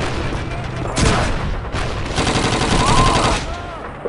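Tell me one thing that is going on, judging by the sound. Gunfire rattles in rapid bursts nearby.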